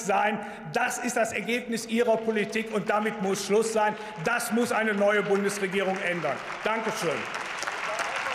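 A man speaks forcefully into a microphone in a large echoing hall.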